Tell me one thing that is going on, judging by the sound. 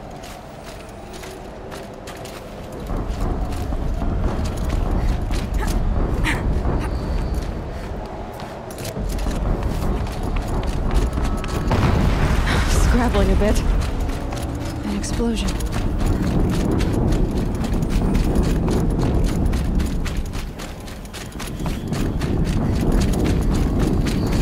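Footsteps crunch quickly over snow and rubble.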